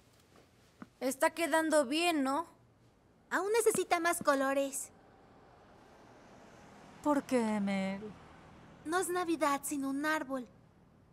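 A woman talks firmly to children, close by.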